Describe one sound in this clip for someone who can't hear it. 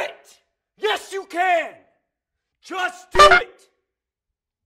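A man shouts forcefully up close.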